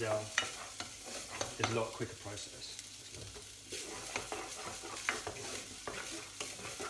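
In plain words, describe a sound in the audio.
A spoon scrapes and clinks against a pan.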